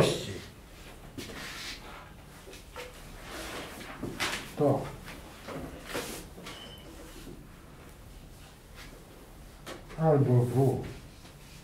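A marker squeaks and scratches on a board.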